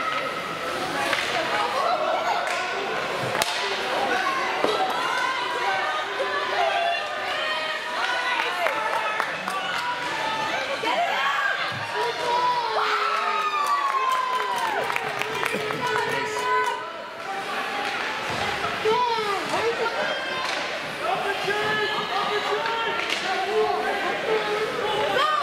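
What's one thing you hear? Spectators nearby talk and call out loudly in an echoing hall.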